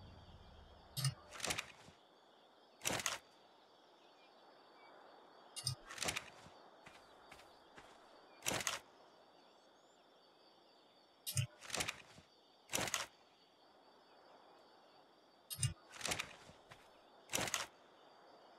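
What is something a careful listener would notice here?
Short game interface clicks sound as a menu opens and closes.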